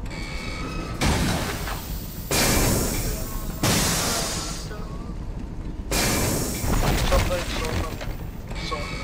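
Loud explosions burst and crackle.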